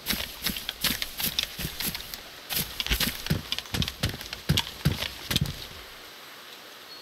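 Footsteps crunch quickly on a gravel road.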